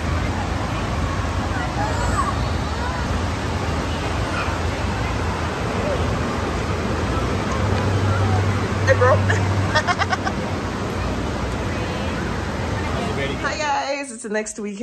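A crowd of children chatters.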